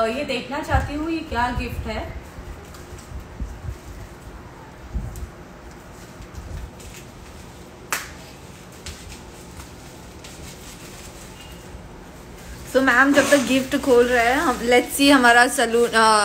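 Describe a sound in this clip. Bubble wrap crinkles as it is handled.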